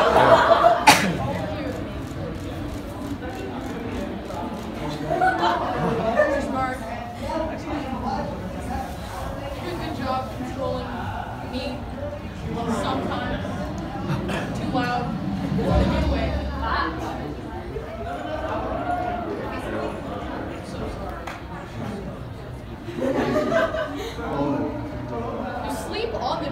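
Young people laugh together.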